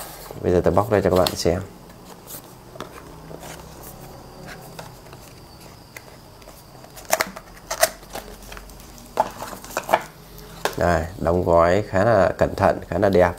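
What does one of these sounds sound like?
A cardboard box rustles and clicks in a man's hands.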